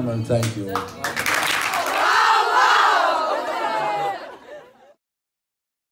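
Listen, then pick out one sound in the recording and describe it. A large group of young women cheer and shout together outdoors.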